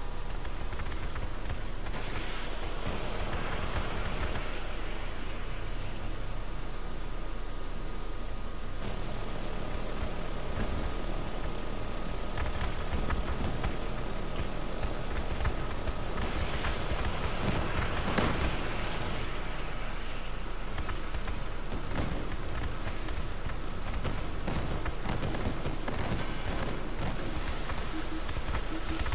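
An armoured vehicle's engine rumbles steadily as it drives.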